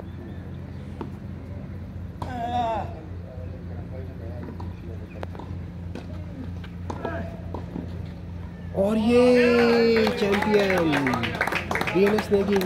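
A tennis racket strikes a ball with sharp pops outdoors.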